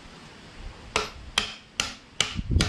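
A mallet strikes metal several times in quick succession.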